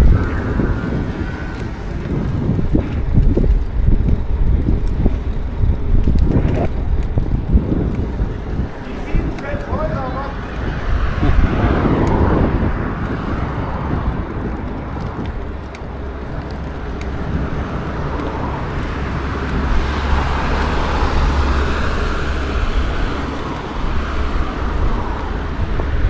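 Wind buffets a nearby microphone outdoors.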